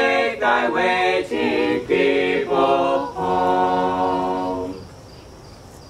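A small group of men and women sings together outdoors.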